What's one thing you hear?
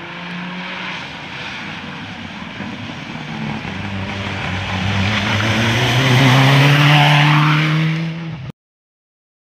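A rally car engine roars loudly, rising in pitch as the car speeds closer.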